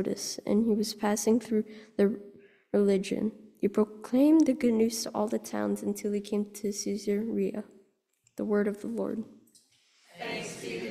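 A young person reads out into a microphone in a resonant room.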